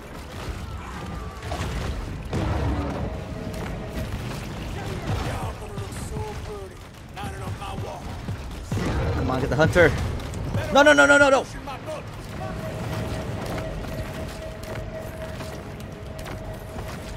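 Game explosions and heavy thuds boom repeatedly.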